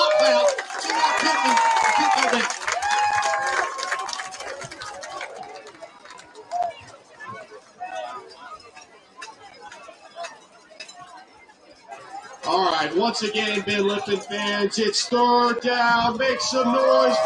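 A crowd murmurs and cheers in open air.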